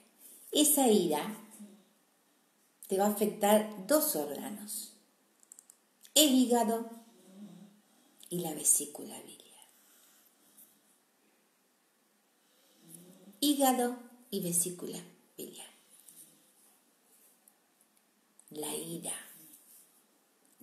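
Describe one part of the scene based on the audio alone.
A middle-aged woman speaks calmly and expressively close to a microphone, pausing between phrases.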